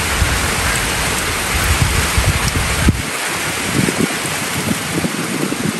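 Raindrops patter and drip on a metal roof edge.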